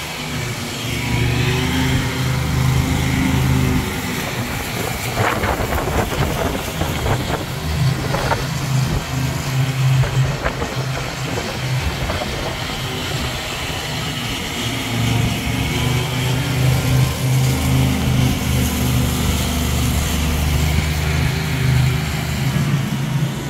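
Wind gusts loudly through leafy trees outdoors.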